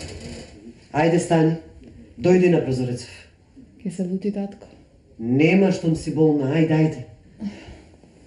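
An elderly woman speaks calmly nearby.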